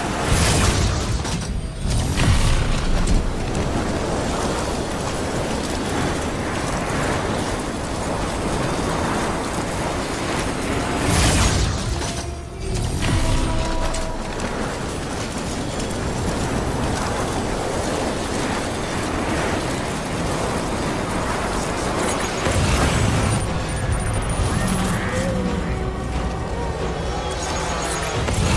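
Wind rushes past during a long fall through the air.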